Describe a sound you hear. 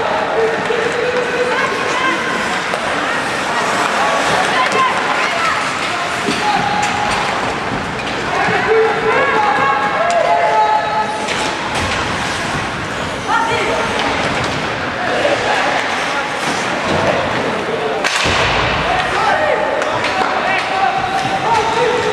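Young players shout and call out from the bench.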